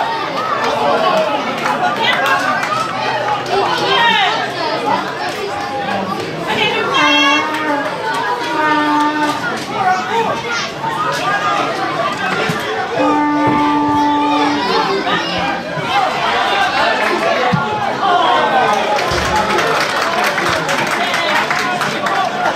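A crowd of spectators chatters and cheers close by outdoors.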